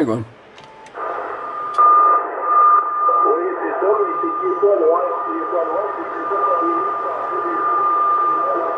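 A radio receiver gives off a steady whine.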